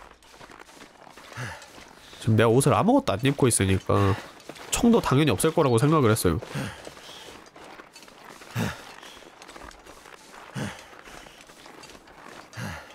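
Footsteps crunch slowly through deep snow.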